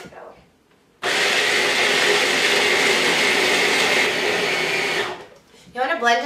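A food processor whirs loudly, then stops.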